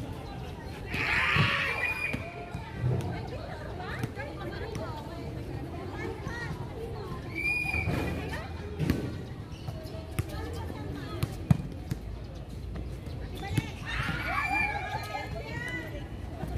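Young women shout and call out during the game.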